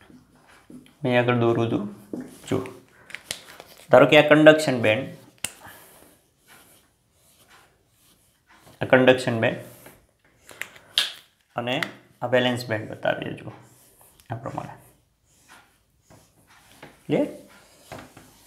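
A man explains calmly and clearly, close by.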